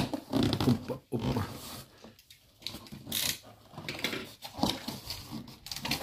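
Foam packing creaks and squeaks as it is touched.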